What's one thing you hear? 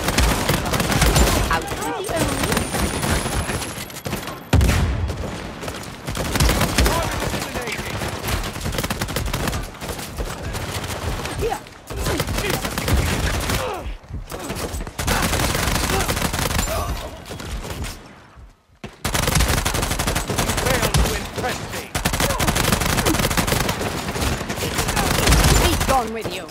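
Rapid gunshots crack again and again.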